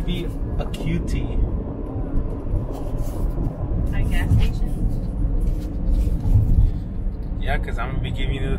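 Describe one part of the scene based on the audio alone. A car's engine and tyres rumble steadily on a highway.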